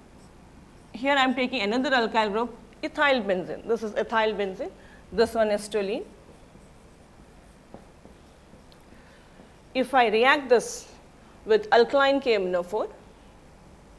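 A woman speaks calmly and clearly into a close microphone, explaining in short phrases.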